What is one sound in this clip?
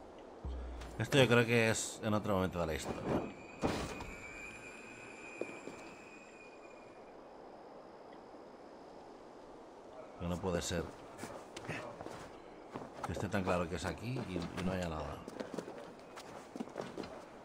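A young man talks casually into a microphone close by.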